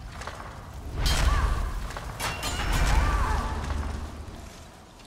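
A fire spell bursts with a roaring whoosh.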